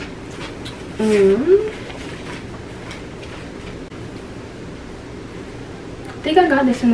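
A young woman sings short phrases nearby.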